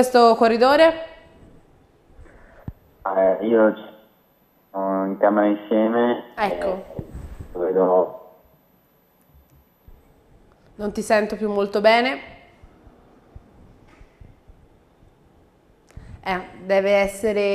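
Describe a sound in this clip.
A woman speaks calmly through a microphone, in short phrases with pauses.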